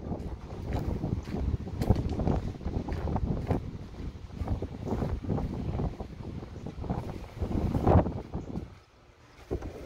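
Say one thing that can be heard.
Wind blows in gusts against the microphone outdoors.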